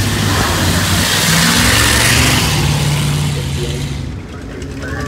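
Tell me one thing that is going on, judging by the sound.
An old truck engine rumbles loudly as it drives past.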